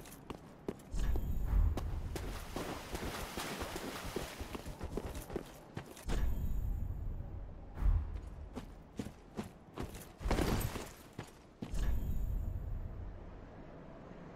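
A heavy thud and rustle comes as a figure rolls across the ground.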